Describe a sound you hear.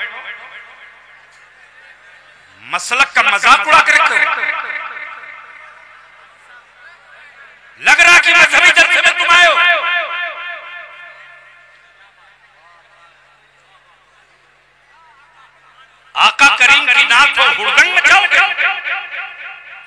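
A man chants loudly through a microphone, with echo.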